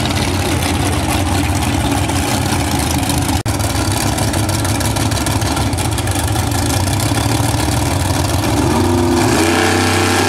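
A race car engine idles with a loud, deep, lumpy rumble.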